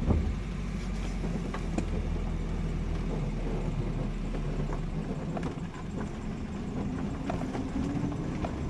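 A car rattles and bumps over a rough dirt track.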